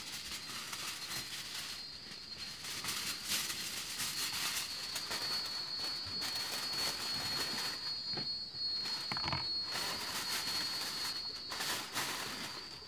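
Aluminium foil crinkles and rustles as it is unrolled and pressed down.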